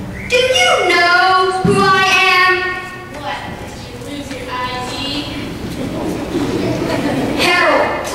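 A child sings loudly through a microphone in a large echoing hall.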